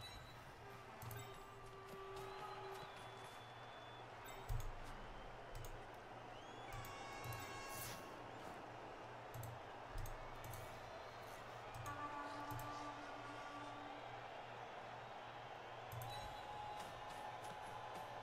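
Game tones chime now and then.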